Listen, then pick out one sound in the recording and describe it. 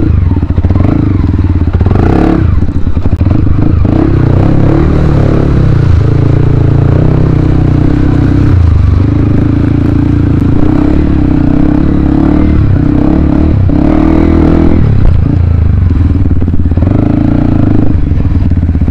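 A motorcycle engine runs loudly up close, revving up and down.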